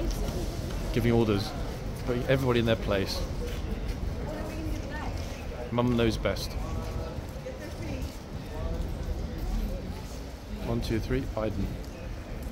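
A woman and a man talk nearby, outdoors.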